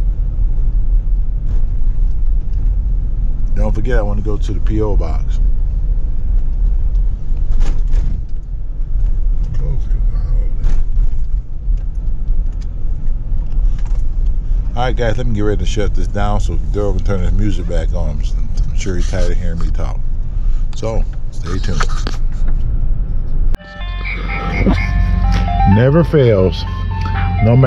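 A car engine hums steadily inside a moving vehicle.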